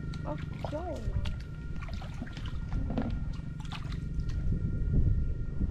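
Feet squelch in wet mud.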